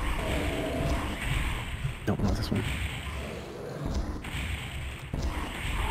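A gun fires loud shots in a video game.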